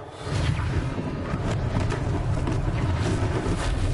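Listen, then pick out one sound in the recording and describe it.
Wooden crates crash and tumble.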